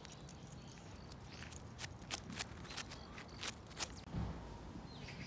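Footsteps crunch on a gritty path.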